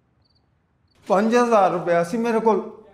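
An elderly man speaks pleadingly.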